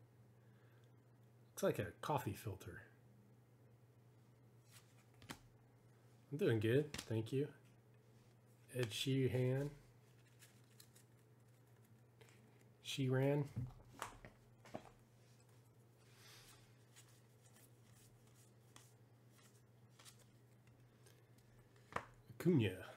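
Trading cards rustle and slide softly against each other in hands.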